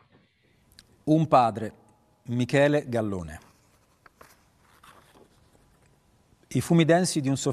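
A man with a deep voice reads out slowly, heard through a loudspeaker.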